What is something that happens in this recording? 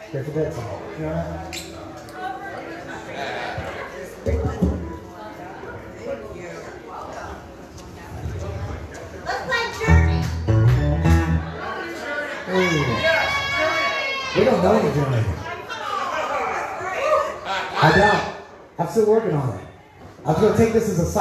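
An acoustic guitar is strummed through a loudspeaker.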